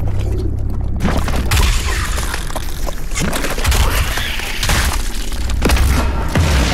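A shotgun fires in loud blasts.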